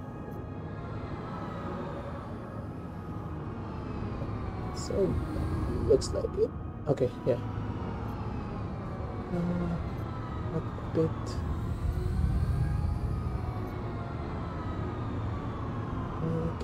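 A spaceship engine hums low and steadily.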